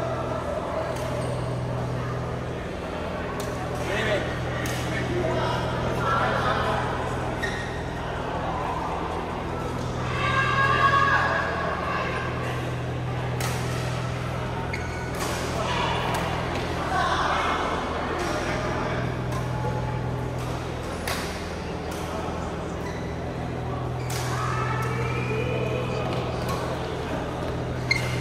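Shuttlecocks pop sharply off rackets in a large echoing hall.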